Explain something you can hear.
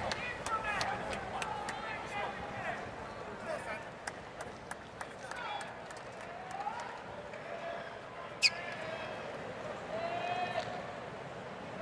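A crowd murmurs and chatters in a large outdoor stadium.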